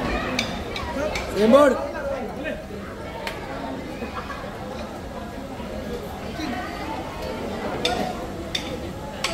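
Drums and cymbals are struck in a loose rhythm.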